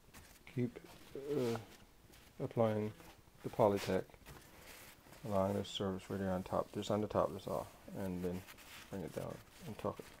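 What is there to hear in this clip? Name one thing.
A plastic sheet rustles and crinkles under a hand.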